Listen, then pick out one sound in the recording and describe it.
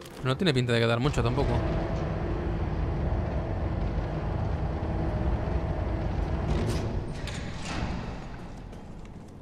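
A lift platform rises with a steady low mechanical hum.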